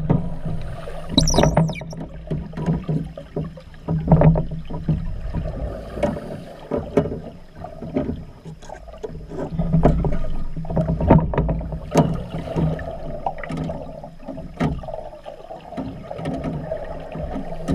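Air bubbles from a diver's breathing gear gurgle and burst underwater.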